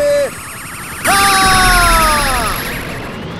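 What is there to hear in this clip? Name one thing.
An energy beam fires with a bright, falling whoosh.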